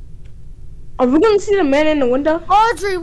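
A young boy speaks loudly and excitedly into a microphone.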